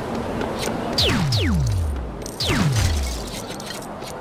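A blaster fires with zaps that drop sharply in pitch.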